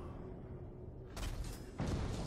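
A bowstring twangs as an arrow is shot.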